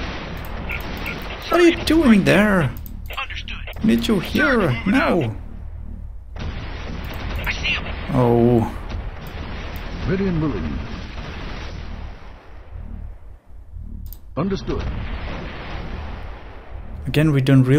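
An explosion bursts with a sharp boom.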